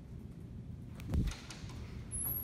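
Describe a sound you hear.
A door clicks open.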